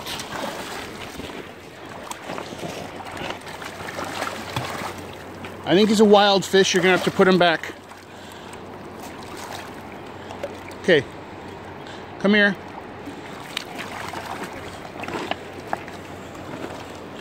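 Shallow water ripples and laps gently over stones.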